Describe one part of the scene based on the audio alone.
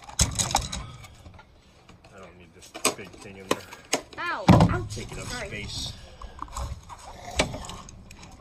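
Objects knock and clatter close by as someone handles them.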